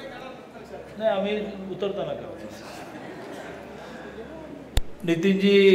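An elderly man speaks calmly through a microphone and loudspeaker in an echoing hall.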